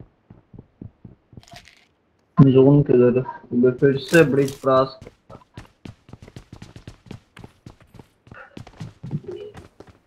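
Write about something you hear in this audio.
Footsteps patter quickly over hard ground and stairs.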